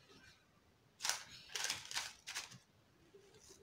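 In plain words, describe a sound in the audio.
Baking paper crinkles as a ball of dough is set down on it.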